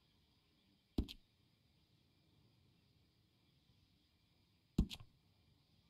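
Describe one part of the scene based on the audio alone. A short click sounds as a menu option is chosen.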